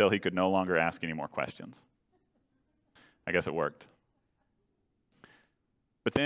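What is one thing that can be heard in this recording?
A middle-aged man speaks calmly into a microphone in an echoing room, with pauses.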